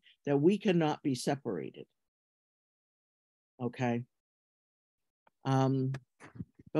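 An elderly woman speaks calmly in short phrases over an online call.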